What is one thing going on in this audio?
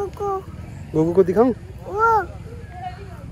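A small child babbles in a high voice close by.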